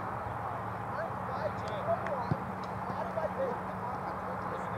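Young men shout to each other across an open field, in the distance.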